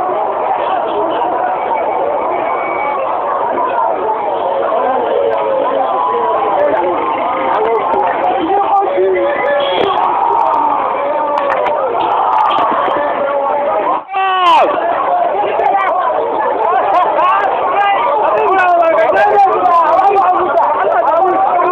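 A large crowd of men chants and shouts loudly outdoors.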